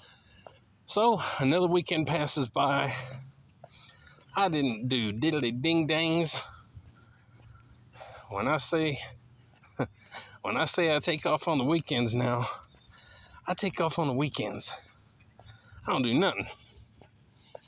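A middle-aged man talks calmly and close to a microphone, outdoors.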